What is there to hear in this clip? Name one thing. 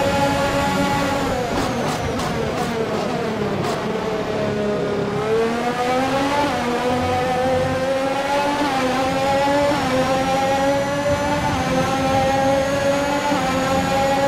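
A racing car engine screams, dropping in pitch while slowing down and rising again as it speeds up through the gears.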